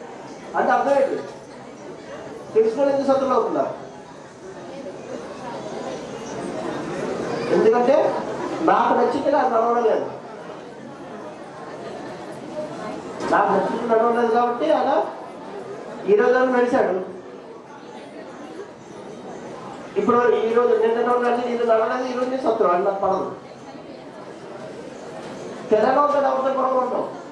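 A man speaks into a microphone in bursts, heard through a loudspeaker in a room.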